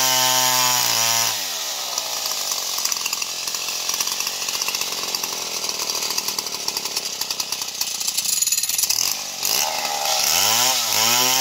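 A chainsaw engine roars at high revs, dips and revs up again.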